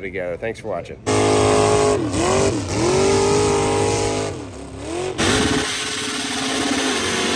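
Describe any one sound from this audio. Car tyres screech in a burnout.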